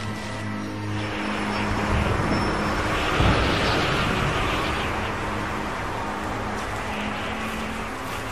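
Strong wind howls and gusts.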